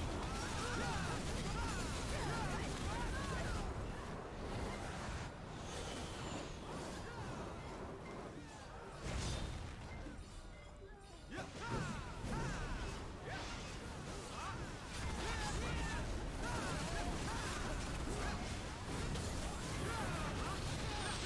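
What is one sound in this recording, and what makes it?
Weapons clash and magic blasts burst in a fierce battle.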